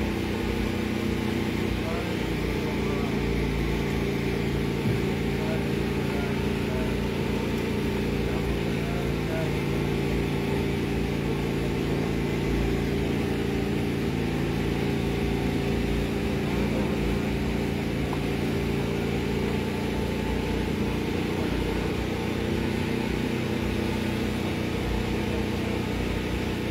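Music plays loudly through a nearby loudspeaker.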